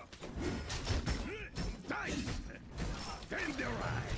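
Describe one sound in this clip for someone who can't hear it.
Game sound effects of spells and hits burst out.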